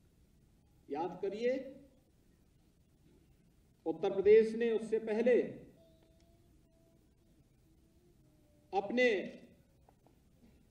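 A middle-aged man speaks slowly and forcefully through a microphone and loudspeakers, with pauses between phrases.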